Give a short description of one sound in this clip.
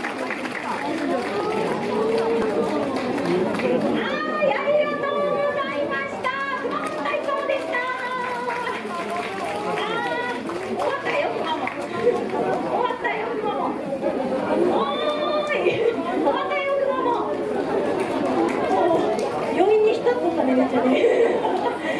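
A crowd murmurs and chatters nearby.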